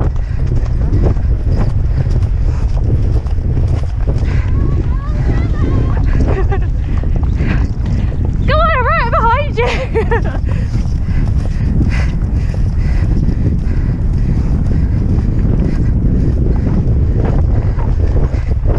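A horse's hooves thud on soft grass at a gallop.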